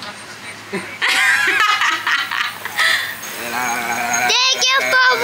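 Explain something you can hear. A young girl shouts and laughs excitedly close by.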